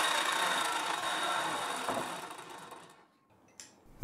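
A miter saw blade whirs and winds down.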